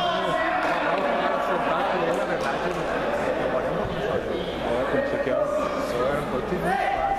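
Young men shout and call out to each other across a large echoing hall.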